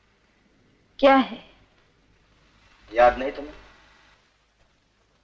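A woman speaks tensely nearby.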